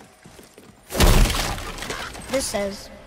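Debris crashes down loudly.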